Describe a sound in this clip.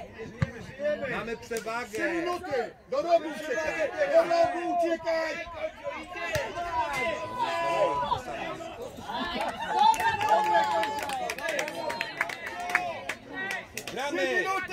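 Young players shout and call out across an open outdoor field.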